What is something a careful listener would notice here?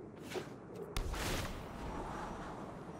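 A fiery whoosh blasts past.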